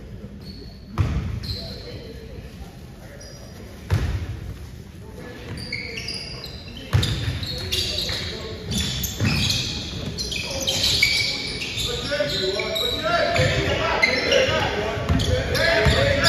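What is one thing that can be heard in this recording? A basketball bounces on a wooden floor with echoing thumps.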